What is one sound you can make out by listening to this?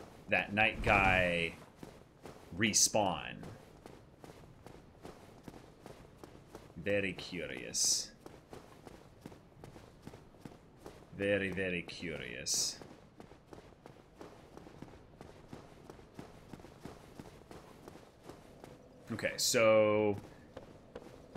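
A young man talks animatedly into a close microphone, in short bursts.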